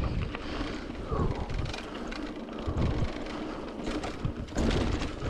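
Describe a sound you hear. Bicycle tyres crunch and rumble over a dirt trail.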